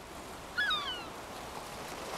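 A gull cries overhead.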